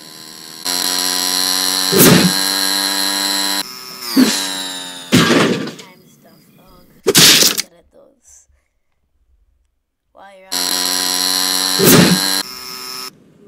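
An electric scooter's motor hums steadily.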